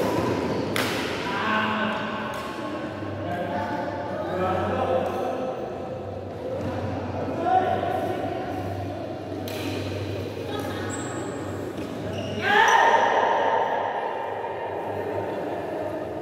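Men call out and talk loudly during play.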